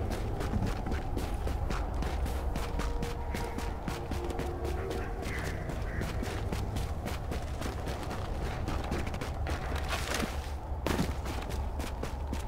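Boots crunch on snow as a person runs.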